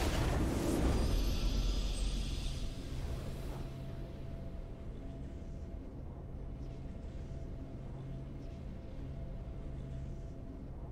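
A triumphant fanfare plays, then settles into soft music.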